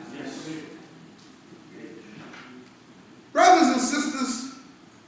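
A man speaks into a microphone, his voice heard through a loudspeaker in an echoing room.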